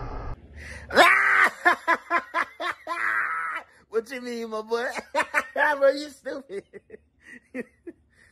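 A young man laughs loudly into a headset microphone.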